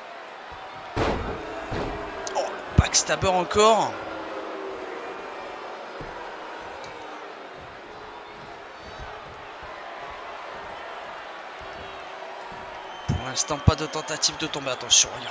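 Bodies slam heavily onto a wrestling ring.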